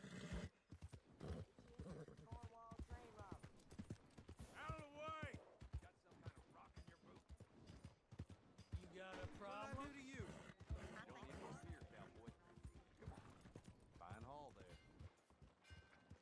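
Horse hooves clop on wet, muddy ground.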